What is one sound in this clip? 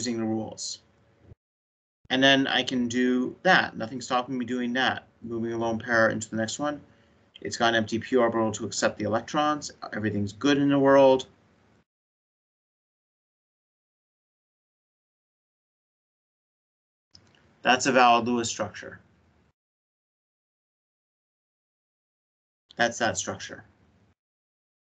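A man speaks calmly through an online call, in bursts with long pauses.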